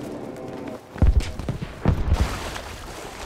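A heavy explosion booms.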